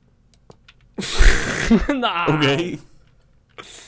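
A young man laughs loudly into a close microphone.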